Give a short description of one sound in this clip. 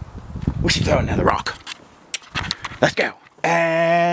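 Young men talk and laugh close by, outdoors.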